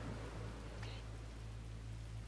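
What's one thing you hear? A young woman says a short word quietly.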